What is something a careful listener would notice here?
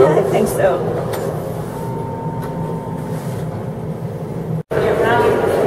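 An elevator hums as it moves.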